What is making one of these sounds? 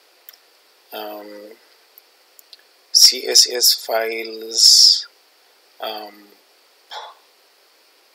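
A man speaks calmly into a microphone, heard close up.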